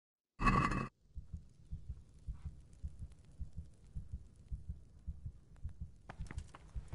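Footsteps thud on a stone floor.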